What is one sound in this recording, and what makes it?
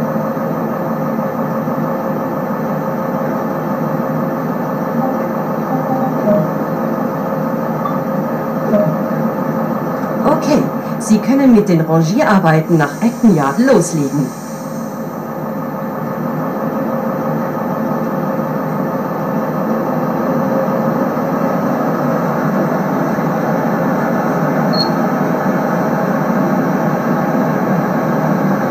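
A train engine hums steadily as the train rolls along the rails.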